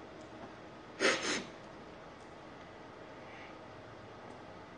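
A man sips from a mug.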